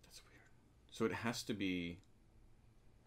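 A man speaks casually, close to a microphone.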